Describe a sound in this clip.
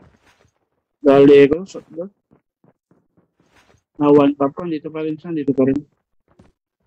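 A young man speaks with animation into a microphone, in short bursts.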